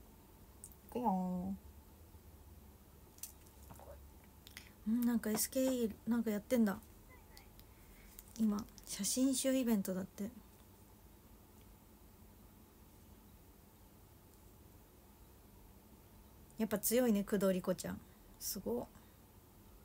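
A young woman speaks calmly in short bursts, close by.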